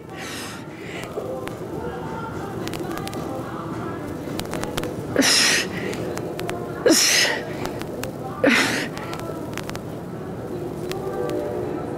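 A woman exhales sharply in short bursts.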